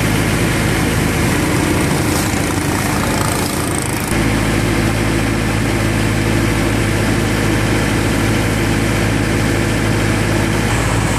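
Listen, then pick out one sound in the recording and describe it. Water rushes and splashes along a moving boat.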